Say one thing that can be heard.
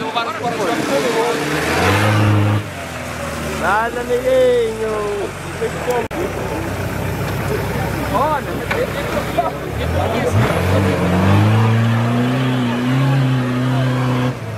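An off-road vehicle's engine revs and roars loudly.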